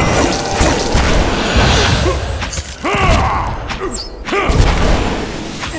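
Weapons clash and thud in a fierce fight.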